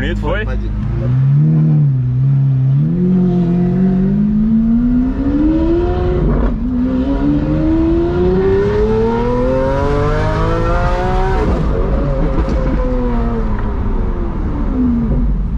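A car engine revs hard and climbs in pitch as it accelerates through the gears.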